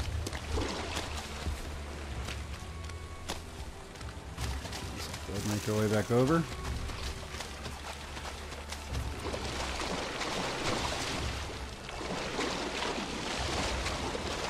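Footsteps crunch along soft ground.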